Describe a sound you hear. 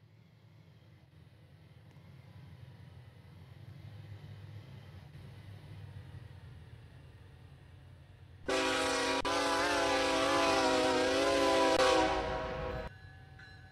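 A diesel locomotive engine rumbles low and steady.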